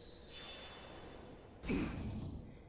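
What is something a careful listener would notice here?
A magical light streak whooshes past.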